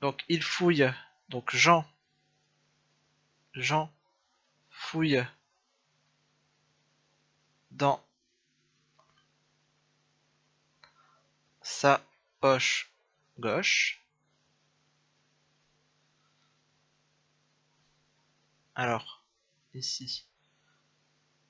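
A young man speaks calmly and slowly into a close microphone, with pauses.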